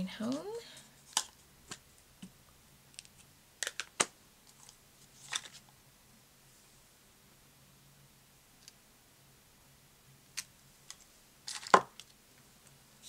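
Plastic packaging rustles and clicks as it is handled.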